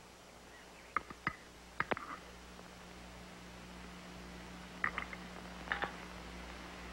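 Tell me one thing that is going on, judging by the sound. Dishes clink on a table.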